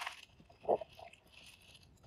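Items rustle as a hand rummages through a bag.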